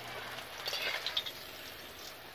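A spatula scrapes against a pan.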